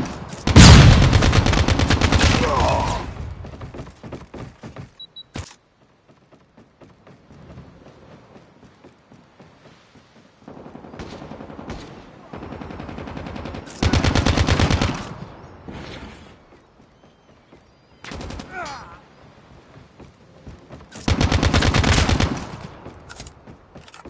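An automatic rifle fires rapid bursts in a video game.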